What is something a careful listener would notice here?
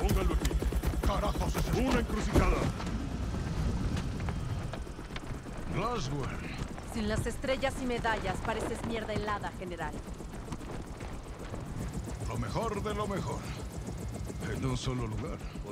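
A middle-aged man speaks tensely.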